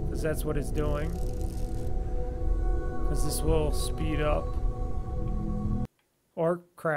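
Music plays with a low, steady rumble.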